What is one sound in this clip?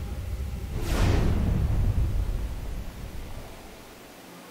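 A magical whoosh swells and slowly fades.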